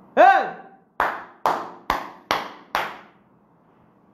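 A woman claps her hands sharply several times.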